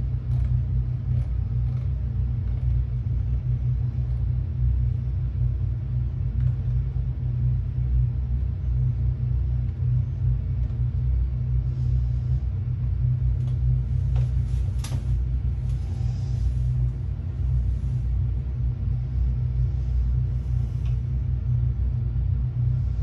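Switches click as a man presses buttons on a panel.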